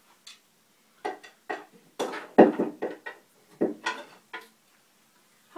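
Wooden bars of a marimba are struck with mallets.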